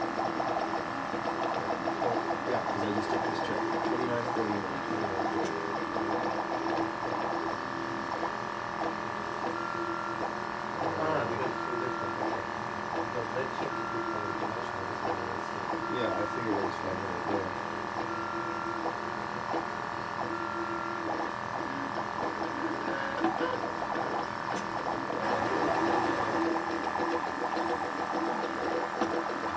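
Stepper motors whir and buzz in shifting tones as a 3D printer moves.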